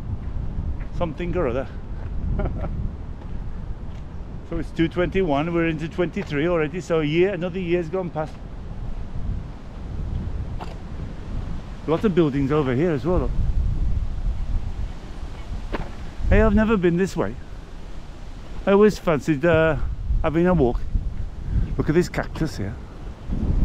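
A middle-aged man talks calmly and cheerfully close to the microphone.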